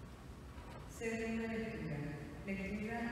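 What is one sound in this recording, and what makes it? A young woman reads aloud calmly through a microphone in a large echoing hall.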